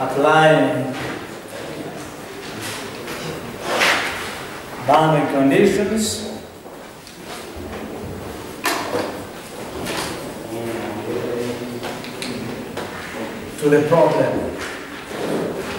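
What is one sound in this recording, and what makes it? A man lectures in a steady, calm voice.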